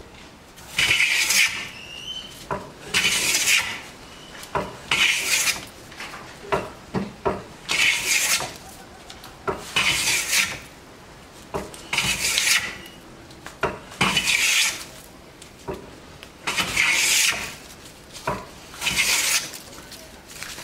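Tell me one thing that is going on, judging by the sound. A hand plane shaves wood in long, regular hissing strokes.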